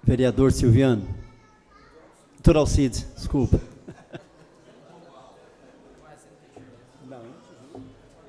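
A middle-aged man speaks through a microphone.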